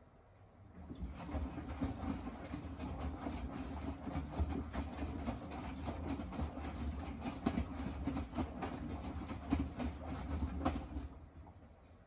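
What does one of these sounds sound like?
Laundry tumbles and swishes loudly inside a spinning washing machine drum.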